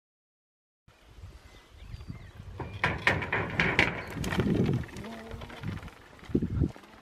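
A bicycle rattles and clatters as it rolls over bumpy ground.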